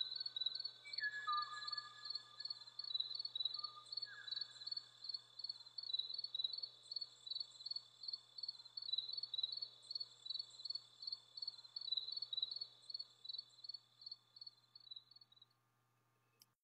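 A small bird sings a rapid, repeated high chirping song.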